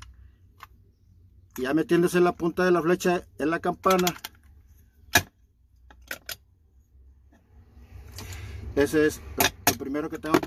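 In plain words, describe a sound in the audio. Metal parts click and clink as they are handled.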